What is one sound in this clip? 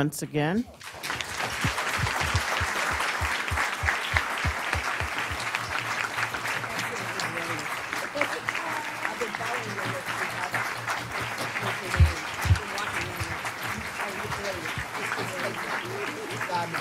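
An audience applauds steadily.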